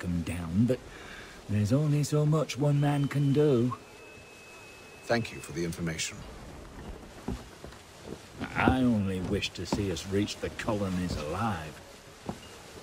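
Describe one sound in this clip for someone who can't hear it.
A man speaks calmly in a deep voice.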